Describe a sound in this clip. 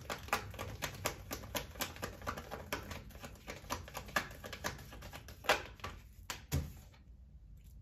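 Cards are shuffled with quick, light riffling clicks.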